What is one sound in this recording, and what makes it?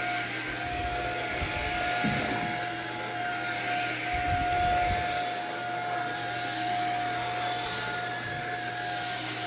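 A cordless vacuum cleaner whirs steadily with a high whine.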